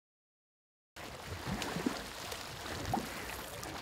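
Water laps gently.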